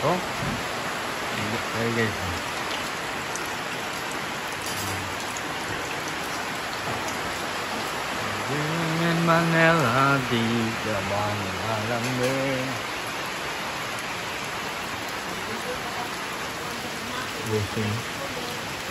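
Rain falls steadily outdoors with a constant hiss.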